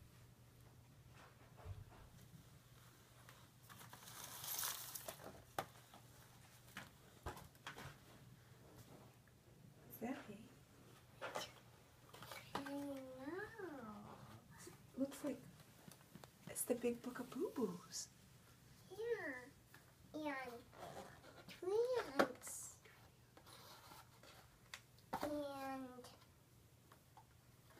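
Plastic toy packaging crinkles and rustles as it is handled.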